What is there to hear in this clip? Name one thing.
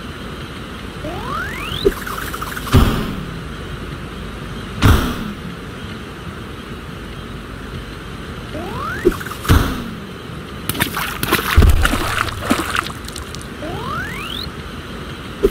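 A short rising whistle sounds several times.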